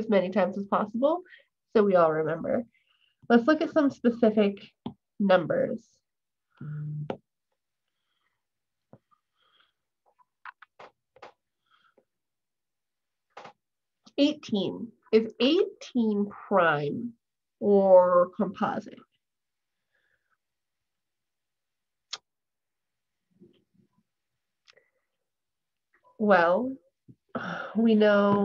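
A young woman talks calmly and clearly through a microphone, with pauses.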